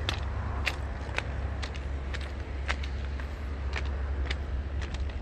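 Footsteps crunch on railway ballast at a walking pace.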